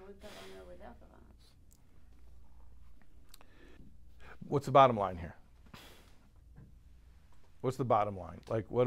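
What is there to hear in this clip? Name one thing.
A middle-aged man speaks calmly close by, with pauses.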